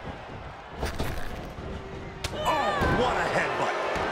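A body slams down hard onto a ring mat.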